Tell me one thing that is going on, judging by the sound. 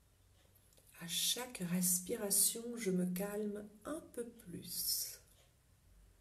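A middle-aged woman speaks calmly and softly, close to a microphone.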